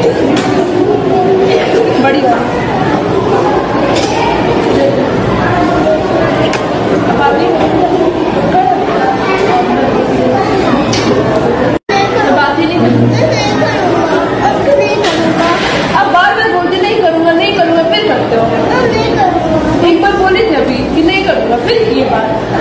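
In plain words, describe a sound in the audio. Many children chatter in the background.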